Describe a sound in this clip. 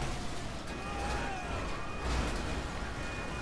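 A car crashes with a loud bang.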